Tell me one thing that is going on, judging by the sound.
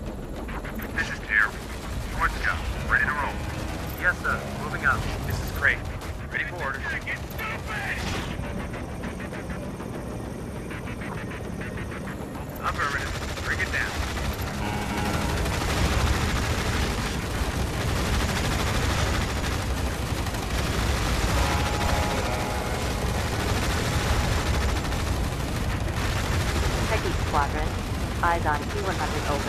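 Helicopter rotors thrum steadily overhead.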